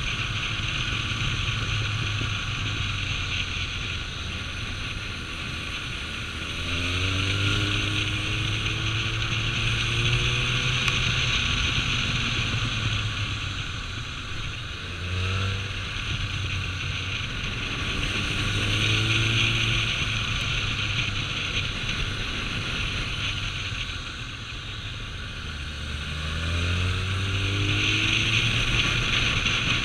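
Wind rushes steadily past the rider.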